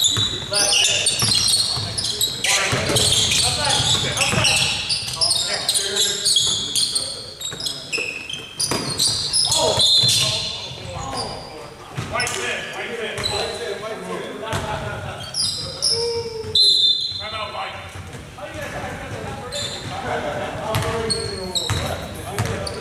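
Young men shout and call out across an echoing gym.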